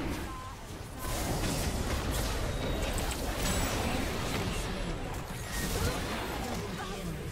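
Game spell effects whoosh and crackle in a fight.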